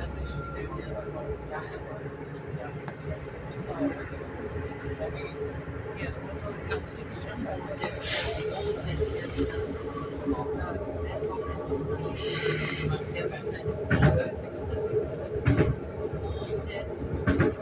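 A train's wheels clack and knock on the rails.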